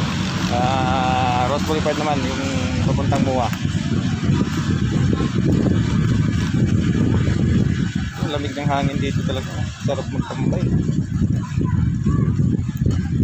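Bicycle tyres rumble steadily over paving stones.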